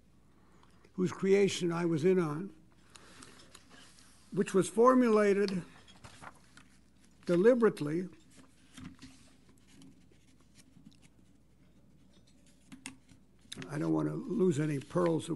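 An elderly man speaks slowly into a microphone, pausing between phrases.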